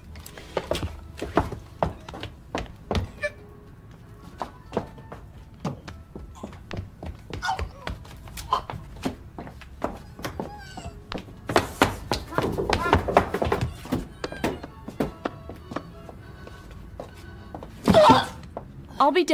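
A woman gasps and chokes in alarm.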